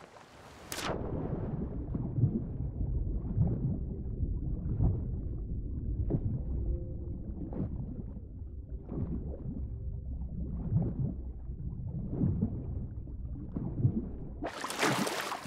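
Muffled water swooshes in repeated strokes as a swimmer moves underwater.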